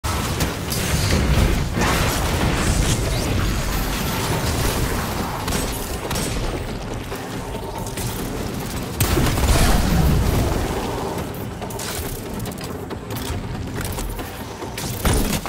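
Guns fire rapidly.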